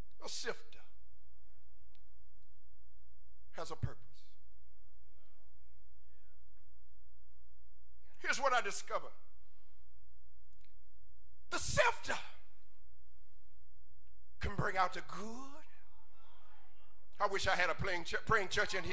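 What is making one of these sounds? A man preaches with animation through a microphone, speaking in short bursts with pauses.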